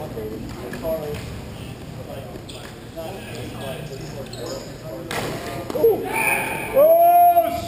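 Young men shout to each other across an echoing rink.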